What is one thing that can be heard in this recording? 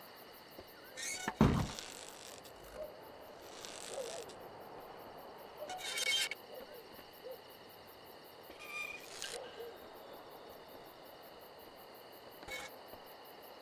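A rope creaks.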